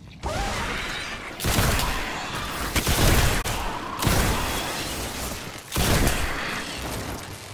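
Gunshots blast in quick bursts with loud booms.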